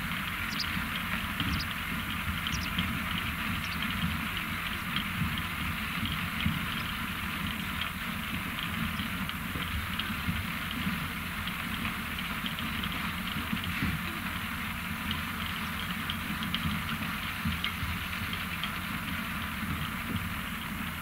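Beets rattle and thud as a conveyor drops them into a pile.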